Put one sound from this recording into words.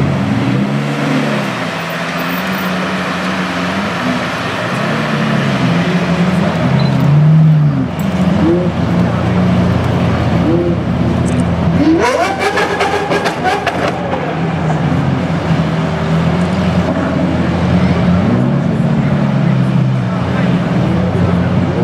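Several sports car engines idle with a deep, loud rumble.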